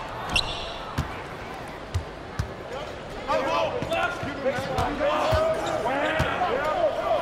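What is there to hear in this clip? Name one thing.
A basketball thumps as it is dribbled on the court.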